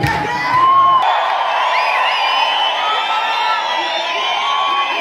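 A large crowd cheers and shouts loudly in a big echoing hall.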